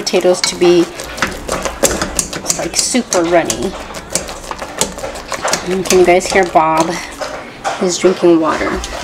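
A potato masher thumps and scrapes in a metal pot.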